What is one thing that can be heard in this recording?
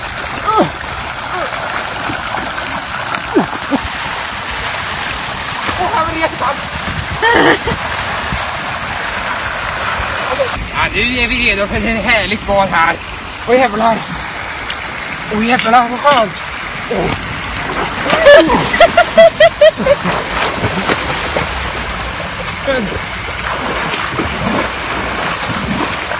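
A young man splashes through water.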